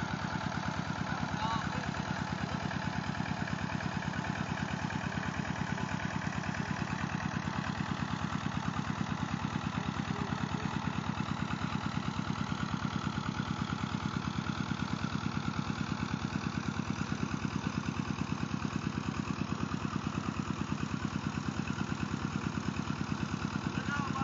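A diesel water pump engine chugs steadily and rapidly nearby, outdoors.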